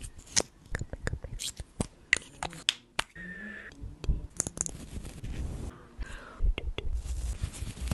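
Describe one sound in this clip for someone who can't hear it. Fingers tap and scratch on a microphone.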